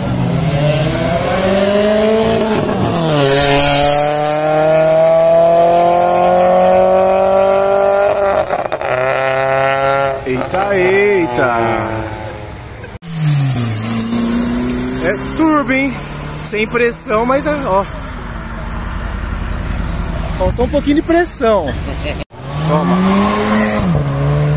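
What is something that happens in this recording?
A car engine revs loudly and drones as it drives past close by.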